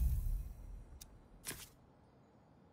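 A soft menu chime clicks.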